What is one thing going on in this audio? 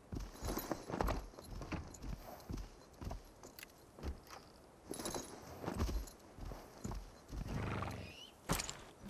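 A horse's hooves thud on soft ground as it trots.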